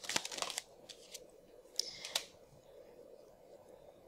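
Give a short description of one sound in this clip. A card slides and taps softly onto a table.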